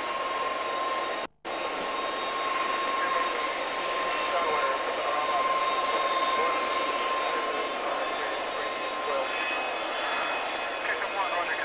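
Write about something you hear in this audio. A three-engine jet airliner taxis past with its engines whining at idle.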